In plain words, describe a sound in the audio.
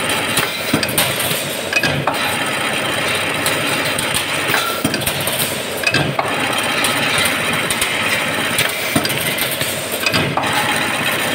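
A machine hums and clatters steadily.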